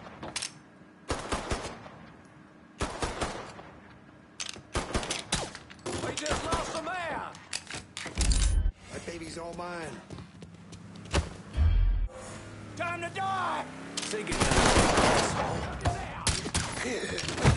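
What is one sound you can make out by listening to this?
Pistol shots ring out in sharp bursts.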